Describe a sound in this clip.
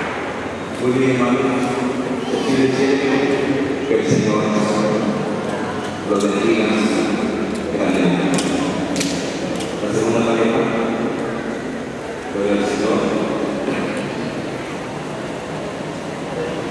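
A crowd sings together in a large echoing hall.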